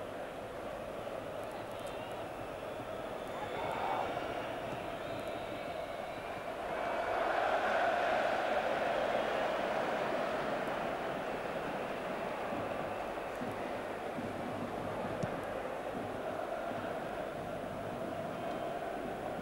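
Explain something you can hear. A large stadium crowd roars and chants steadily, swelling loudly for a while.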